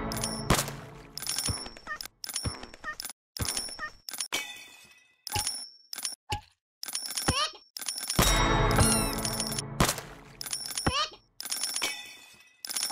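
Sharp game hit sounds strike again and again.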